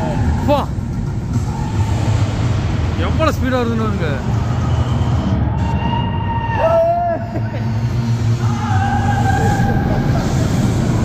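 A roller coaster rumbles along its track.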